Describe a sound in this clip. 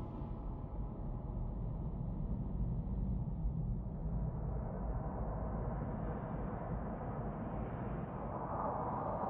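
Large airship engines hum with a deep, steady rumble.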